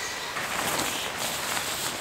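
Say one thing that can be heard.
Tent fabric rustles as a person moves inside.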